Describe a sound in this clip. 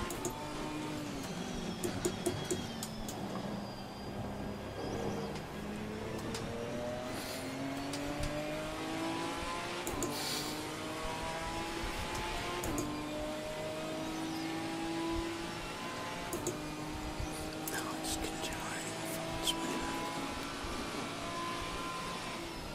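A racing car engine roars, dropping in pitch through downshifts and then rising as it speeds up through the gears.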